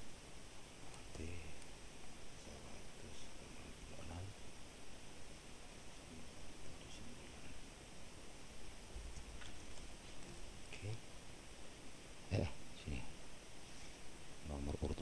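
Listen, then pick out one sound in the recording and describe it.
A man speaks calmly into a nearby microphone.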